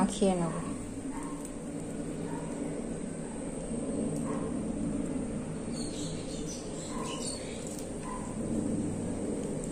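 Lemon juice drips and patters onto a metal plate.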